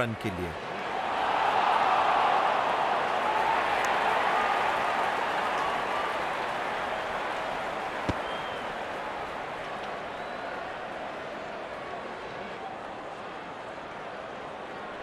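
A large crowd cheers and roars, then slowly dies down.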